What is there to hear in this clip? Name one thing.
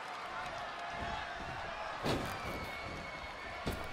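Bodies thud as two wrestlers grapple.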